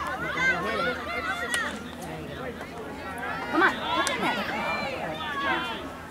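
Young women players call out to each other across the field.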